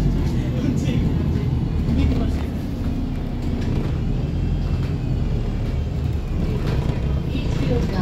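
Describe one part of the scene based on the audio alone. A bus engine rumbles low and steady while the bus drives along.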